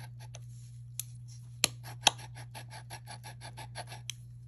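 Metal rings click sharply against a metal bracelet.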